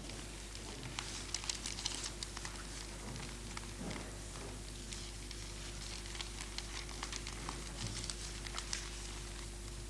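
Newspaper pages rustle and crinkle as they are handled nearby.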